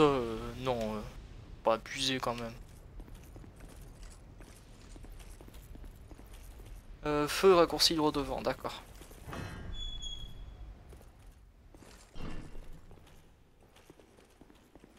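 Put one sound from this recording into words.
Heavy footsteps clank on stone.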